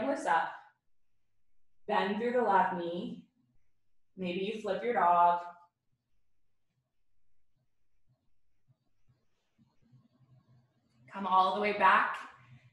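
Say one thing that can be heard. A young woman talks calmly and clearly into a nearby microphone, pausing between phrases.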